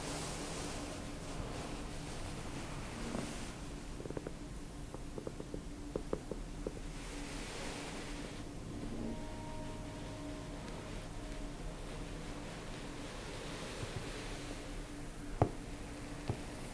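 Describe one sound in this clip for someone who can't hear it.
Fingers rub and scratch softly through hair close to a microphone.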